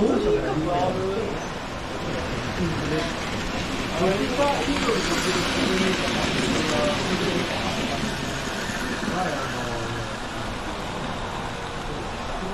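Model trains rattle along the tracks, rolling close past and then fading away.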